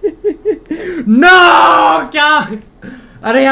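A young man shouts loudly in dismay.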